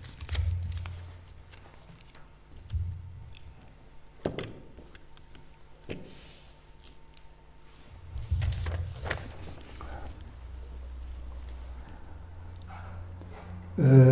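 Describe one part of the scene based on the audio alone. Papers rustle as they are handled.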